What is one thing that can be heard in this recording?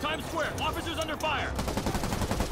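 A man speaks urgently into a police radio.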